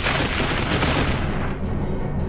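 Thunder cracks loudly close by.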